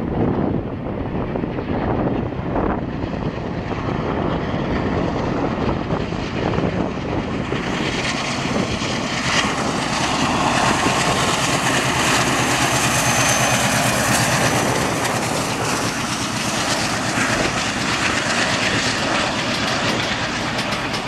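A diesel locomotive engine roars close by as it passes.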